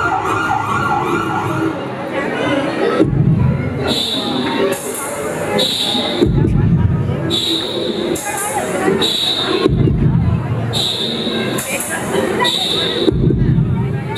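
Music with singing plays loudly through a loudspeaker.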